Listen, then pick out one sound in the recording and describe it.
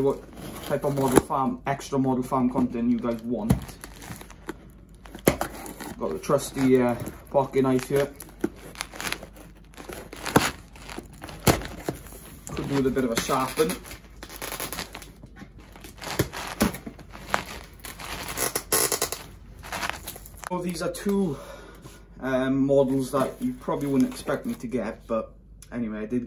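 Hands rub and tap against a cardboard box.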